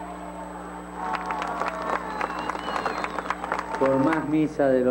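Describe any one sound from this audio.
A large crowd claps its hands.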